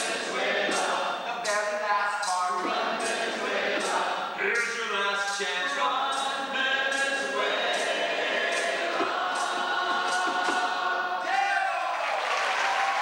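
A group of young performers sings together in a large hall.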